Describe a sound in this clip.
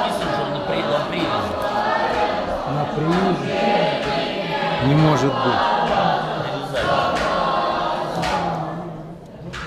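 A man talks close by in a large echoing hall.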